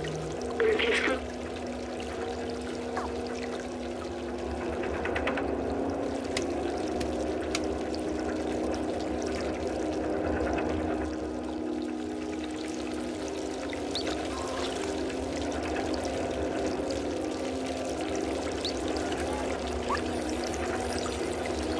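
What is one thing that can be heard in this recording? A cat's paws patter softly on a hard floor.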